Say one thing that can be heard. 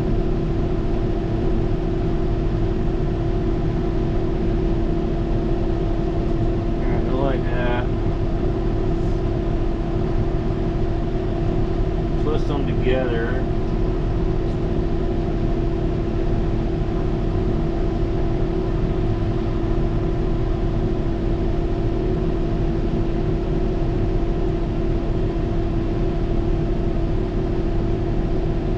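Control levers click under a man's hand.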